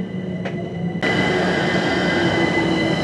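A standing train hums steadily.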